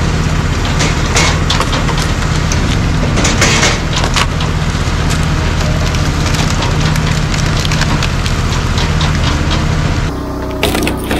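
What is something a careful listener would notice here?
Split logs tumble and clatter onto a pile.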